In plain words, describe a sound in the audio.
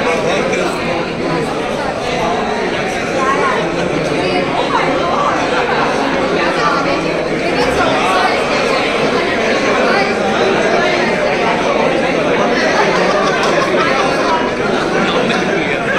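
A crowd chatters throughout in a busy indoor space.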